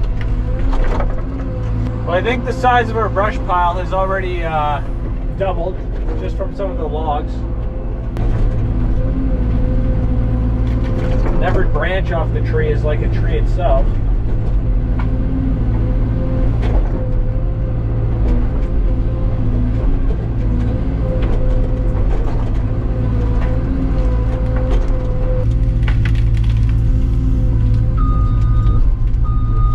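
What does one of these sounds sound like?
A heavy machine's diesel engine drones steadily from inside its cab.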